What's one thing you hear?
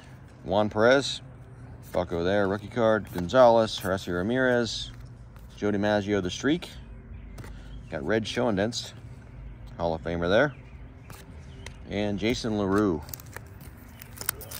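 Trading cards slide and shuffle softly between a person's fingers.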